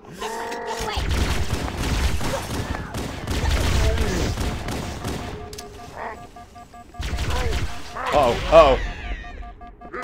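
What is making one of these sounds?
Alien creatures squeal and chatter.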